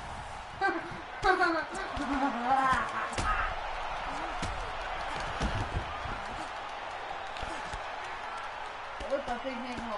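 Punches and kicks land with dull thuds.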